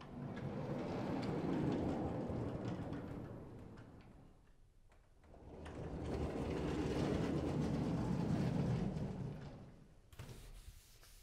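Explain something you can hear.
A heavy sliding chalkboard rumbles loudly as it moves up and down.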